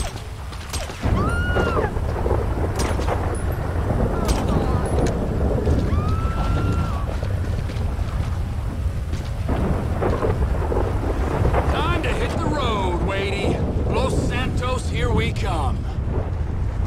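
Thunder rumbles loudly overhead.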